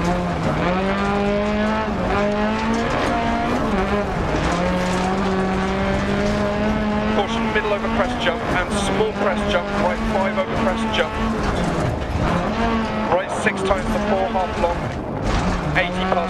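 A rally car engine roars steadily, rising and falling in pitch as it revs.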